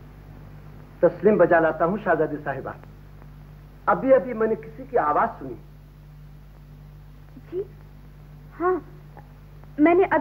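A man speaks with animation through an old, muffled recording.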